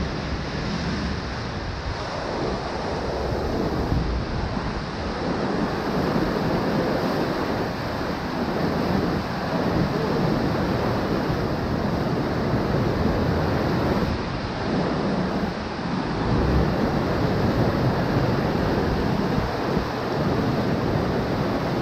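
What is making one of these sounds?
Wind buffets loudly past the boat.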